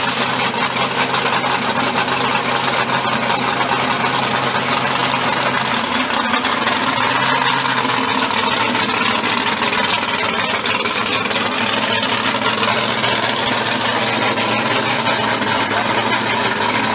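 A powerful car engine idles with a loud, rough rumble.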